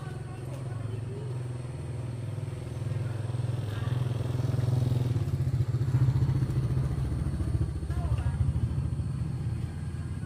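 A motorbike engine hums nearby and passes.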